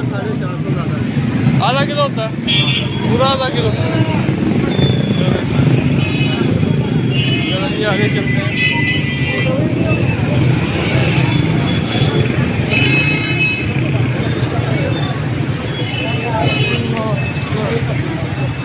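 Motorbike engines putter and rumble along a busy street.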